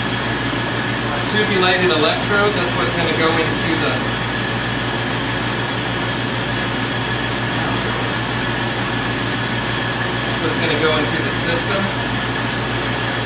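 A gas torch flame roars steadily.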